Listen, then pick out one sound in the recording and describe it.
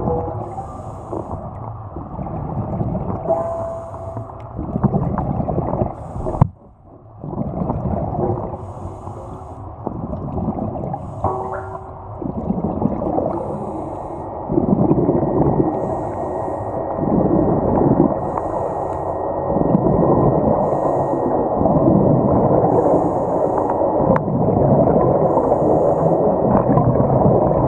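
Air bubbles rumble and gurgle loudly underwater.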